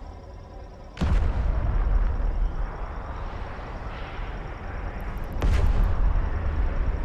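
A loud laser blast booms suddenly, twice.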